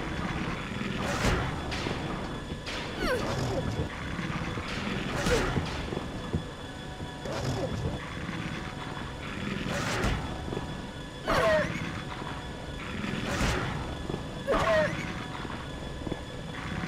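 A creature shrieks and gurgles in short bursts.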